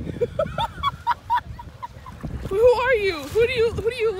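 Water splashes around a wader's legs.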